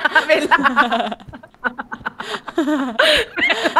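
A young woman laughs, close to a microphone.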